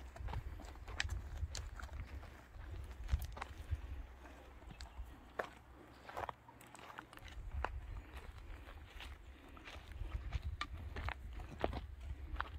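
Footsteps crunch on a gravel path outdoors.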